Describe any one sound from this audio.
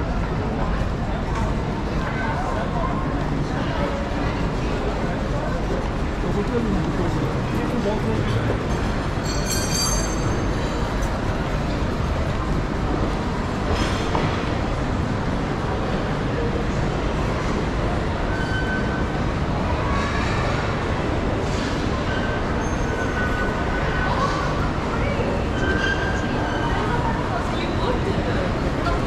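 A crowd of men and women chatters and murmurs in the background.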